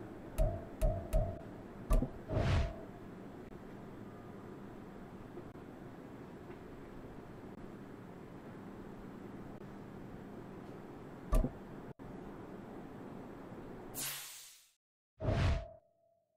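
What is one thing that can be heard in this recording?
Short game menu clicks chime several times.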